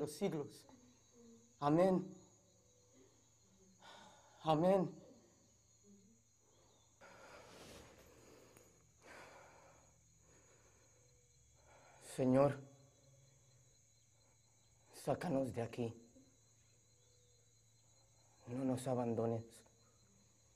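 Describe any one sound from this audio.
A man close by lets out short, strained cries with pauses between them.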